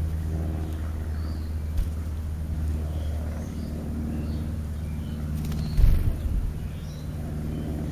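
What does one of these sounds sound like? Birds chirp faintly nearby.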